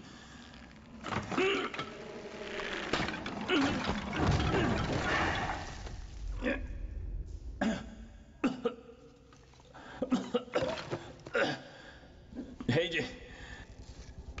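A man groans and gasps in pain.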